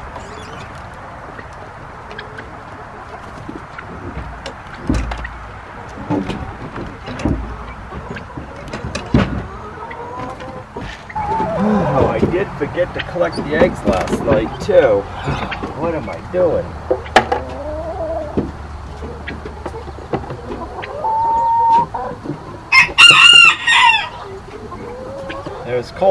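Hens cluck and squawk nearby.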